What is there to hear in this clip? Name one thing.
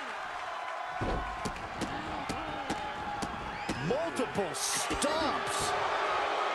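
Sharp slaps and thuds ring out as wrestlers strike each other.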